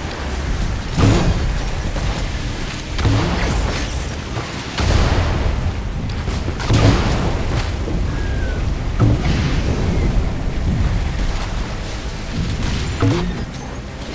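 Explosions boom.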